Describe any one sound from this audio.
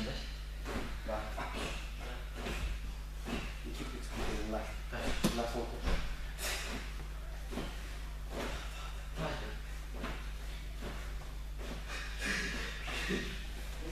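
Bodies thump softly on a gym mat.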